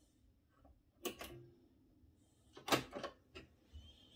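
A button on a turntable clicks as it is pressed.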